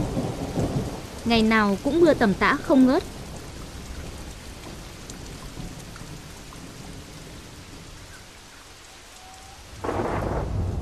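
Heavy rain pours onto water.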